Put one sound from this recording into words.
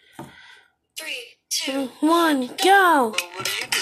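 A cartoon song with high singing voices plays from a phone.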